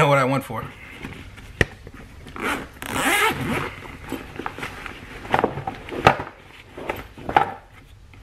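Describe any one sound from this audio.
A zipper rasps open on a fabric bag.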